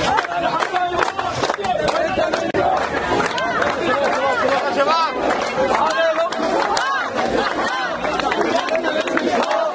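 People in a crowd clap their hands in rhythm.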